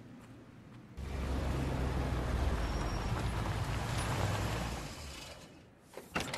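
A car engine roars loudly as a car drives up.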